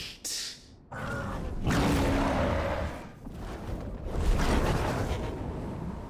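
A huge creature lets out a deep, rumbling roar.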